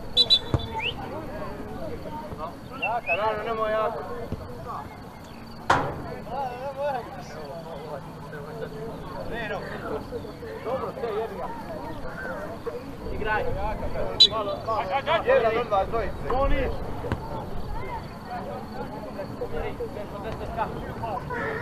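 Young men shout to each other across an open field outdoors.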